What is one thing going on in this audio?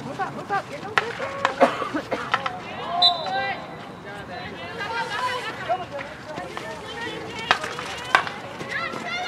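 Hockey sticks strike a ball with sharp cracks.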